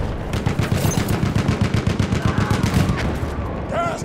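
A machine gun fires in rapid bursts.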